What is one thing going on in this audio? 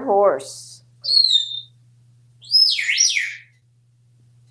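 A parrot whistles and squawks shrilly.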